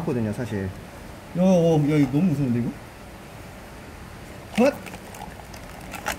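A plastic bottle crinkles as it is handled.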